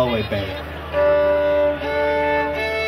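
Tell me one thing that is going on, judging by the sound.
A fiddle starts to play.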